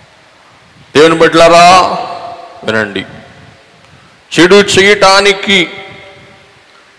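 A man speaks slowly and earnestly into a microphone, with pauses.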